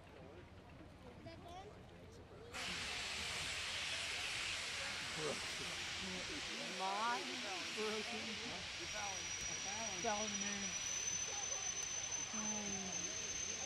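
A steam locomotive chugs steadily in the distance.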